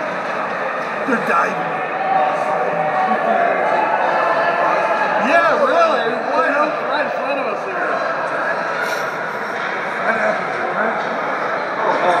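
Ice skates scrape and swish across the ice.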